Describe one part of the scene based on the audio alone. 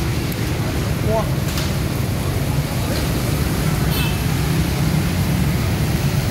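Rain falls steadily on a wet street outdoors.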